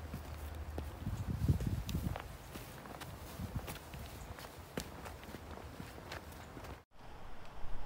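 Footsteps crunch on dry twigs and gravel.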